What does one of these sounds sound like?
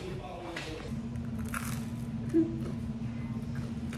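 A young woman crunches a waffle while eating.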